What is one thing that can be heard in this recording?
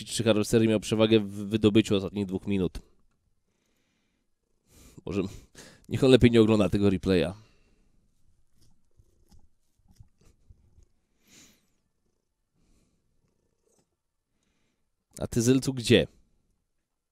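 A man talks with animation into a close headset microphone.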